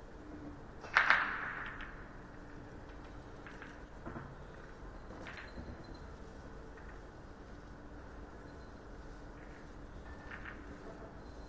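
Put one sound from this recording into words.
A cue strikes a billiard ball with a sharp clack.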